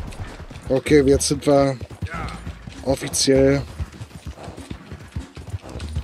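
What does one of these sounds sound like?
A horse's hooves clop slowly.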